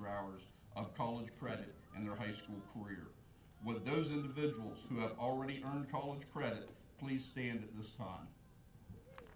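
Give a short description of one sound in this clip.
A man speaks calmly through a loudspeaker outdoors.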